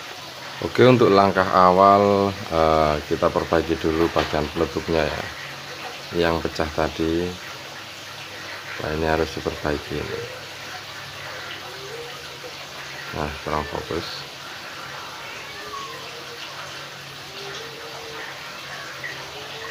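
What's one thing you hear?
Hard plastic parts clack softly as they are handled.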